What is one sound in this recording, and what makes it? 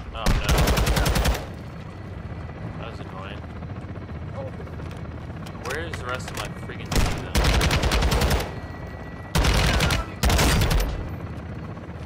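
Rapid gunfire bursts from an automatic rifle.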